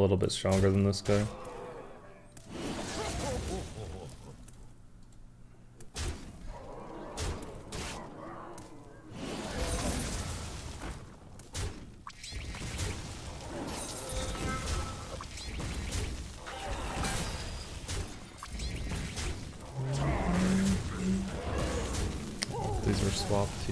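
Fantasy game creatures clash with thuds and magical bursts.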